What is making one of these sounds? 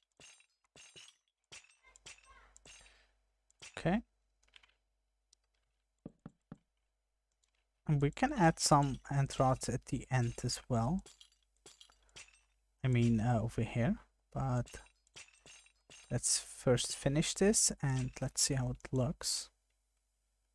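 Wooden blocks clack softly as they are placed one after another.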